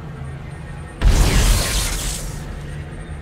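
A gun fires with a loud, rushing blast.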